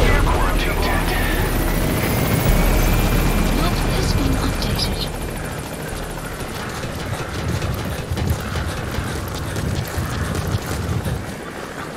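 Boots run quickly across a metal deck.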